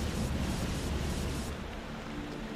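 A fire crackles and roars close by.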